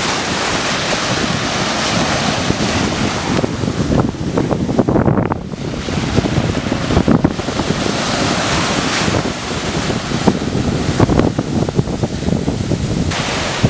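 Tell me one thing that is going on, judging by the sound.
Waves wash and foam onto a sandy shore.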